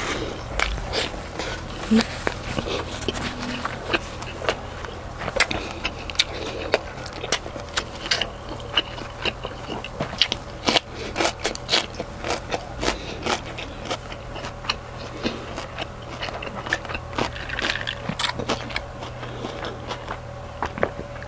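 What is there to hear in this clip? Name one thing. A man chews food noisily and smacks his lips close to a microphone.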